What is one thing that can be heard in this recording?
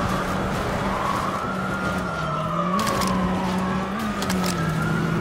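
A car crashes through bushes and a fence with a crunch.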